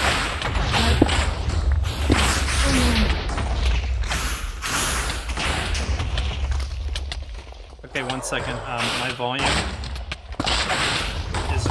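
Sword blows strike a monster with sharp hits.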